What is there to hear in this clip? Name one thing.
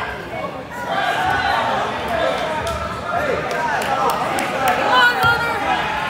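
Spectators in the stands shout and cheer in a gym that echoes.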